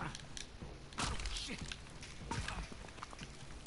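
A man exclaims in alarm close by.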